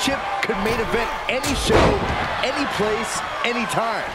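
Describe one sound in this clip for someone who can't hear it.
A body thuds heavily onto a wrestling ring mat.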